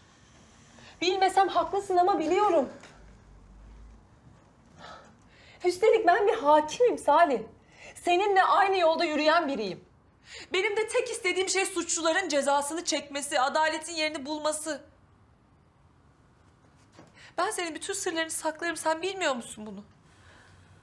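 A woman speaks nearby with rising emotion, her voice breaking.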